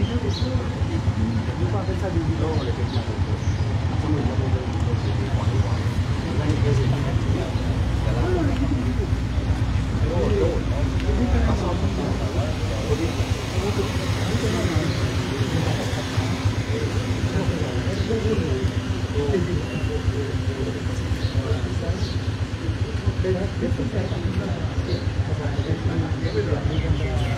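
Other men answer in conversation nearby.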